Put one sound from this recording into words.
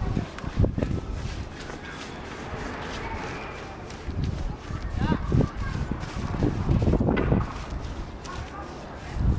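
A paintbrush brushes and scrapes across a rough floor.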